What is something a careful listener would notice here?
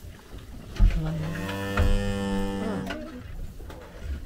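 A cow moos loudly and long nearby.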